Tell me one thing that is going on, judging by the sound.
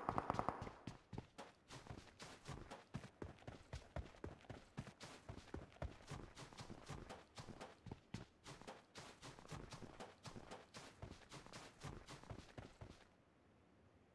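Footsteps crunch quickly over snow and ground.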